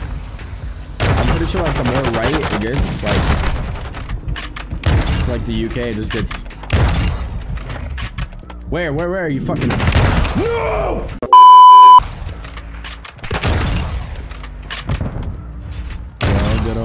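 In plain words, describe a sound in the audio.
A sniper rifle fires loud sharp shots.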